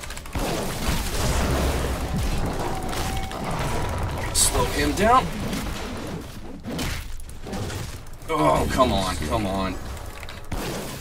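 Fantasy battle sound effects clash and whoosh throughout.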